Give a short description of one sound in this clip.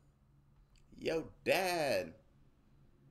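A young man laughs loudly close by.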